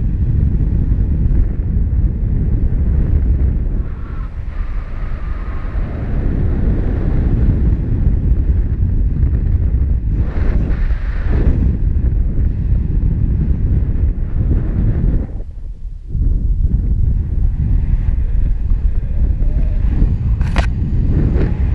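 Strong wind rushes and buffets loudly past the microphone.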